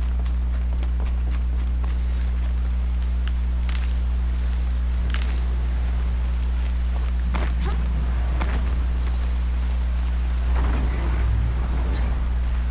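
Footsteps patter quickly over rocky ground.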